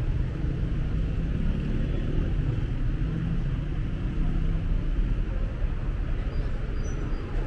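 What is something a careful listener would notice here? Street traffic rumbles steadily nearby.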